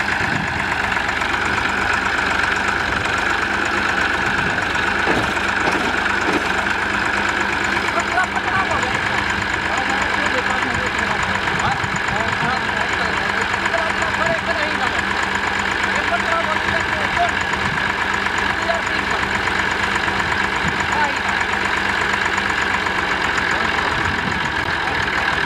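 A tractor engine idles with a steady, rumbling chug close by.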